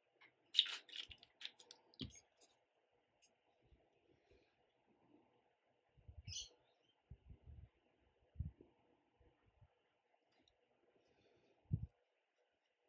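A paintbrush taps and clinks against a small jar.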